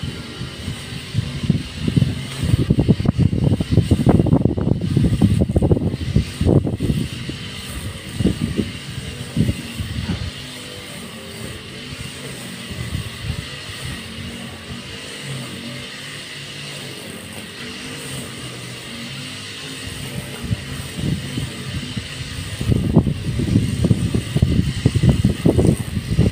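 Wind blows outdoors in rough gusts.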